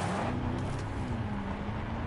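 A car engine hums as a car drives off.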